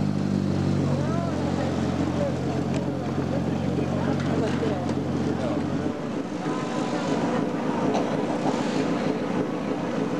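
Men talk nearby in an open crowd.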